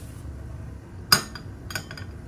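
A metal strainer clinks against a ceramic bowl.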